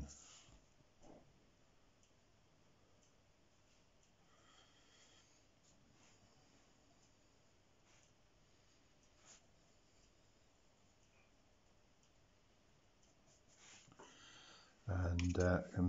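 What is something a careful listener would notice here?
A brush strokes softly on paper.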